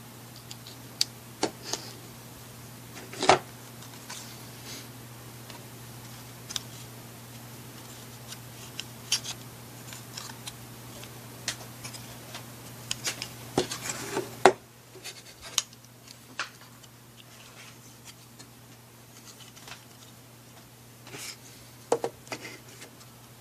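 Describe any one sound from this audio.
Plastic toy cases click and clatter as hands handle them.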